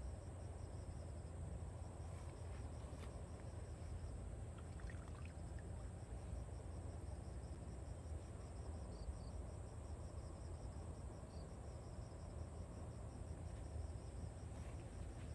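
Grass rustles underfoot as a person moves through it.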